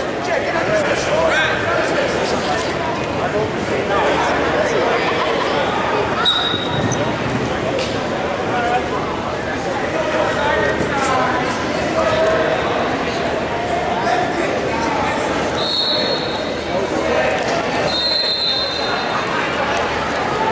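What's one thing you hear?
A crowd of people talks and shouts in a large echoing hall.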